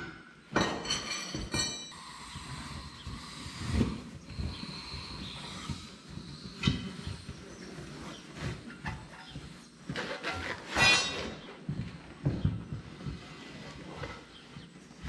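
A heavy rubber tyre thumps and scrapes on a concrete floor.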